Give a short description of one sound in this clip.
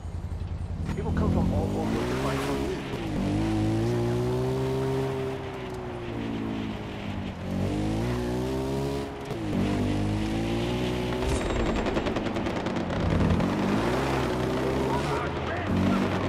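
A quad bike engine revs and drops in pitch as it drives along.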